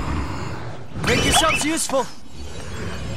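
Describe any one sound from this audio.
A dragon roars.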